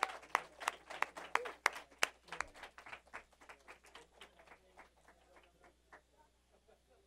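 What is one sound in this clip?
An audience applauds, and the applause slowly fades.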